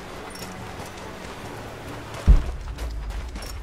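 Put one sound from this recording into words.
Footsteps rustle through dry undergrowth.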